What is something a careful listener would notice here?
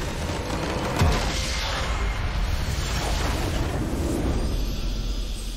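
A huge crystal structure explodes with a deep rumbling blast.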